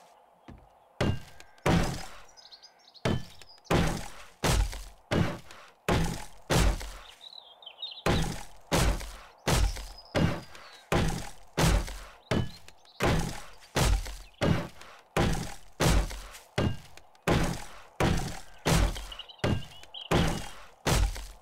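A claw hammer in a video game strikes wooden boards in a regular rhythm.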